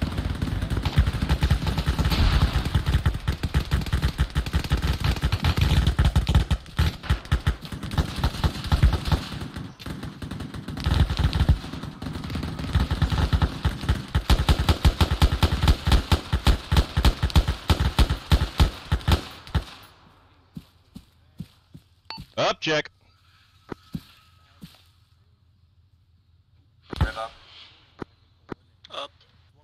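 Gunfire cracks in rapid, loud bursts.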